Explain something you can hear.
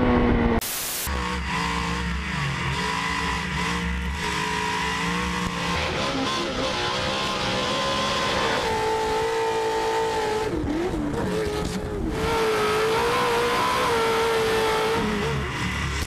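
A race car engine roars and revs up and down.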